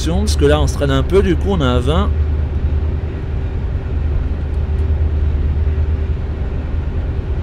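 A train's motor hums low and steady.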